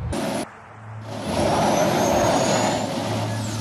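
A motorcycle engine rumbles.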